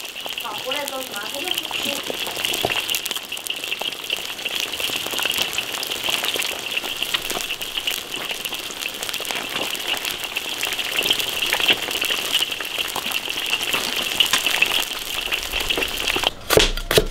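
Hot oil sizzles and crackles steadily as fish fries.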